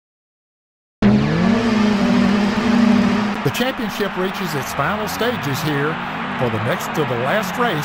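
Racing car engines roar and whine as they rev.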